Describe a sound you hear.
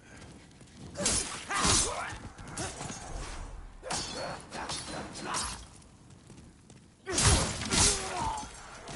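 Swords clash and strike with loud metallic hits.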